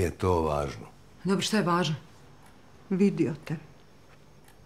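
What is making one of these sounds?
A middle-aged woman speaks softly.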